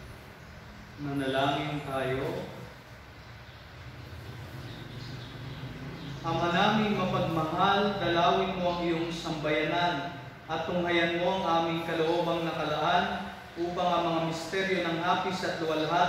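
A man chants in a calm, steady voice in a slightly echoing room.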